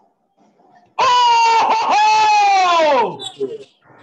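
A young man exclaims loudly in surprise.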